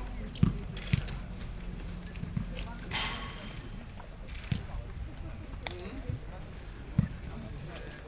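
Footballs are kicked with sharp thuds outdoors.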